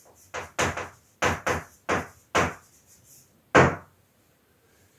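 Chalk taps and scrapes sharply on a board.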